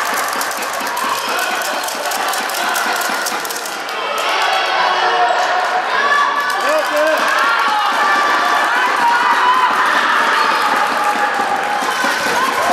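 Sneakers squeak sharply on a wooden gym floor.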